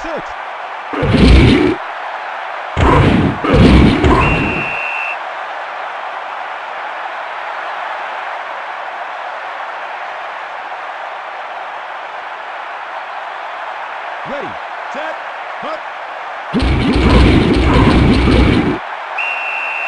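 Football players crash together in a tackle with a heavy thud.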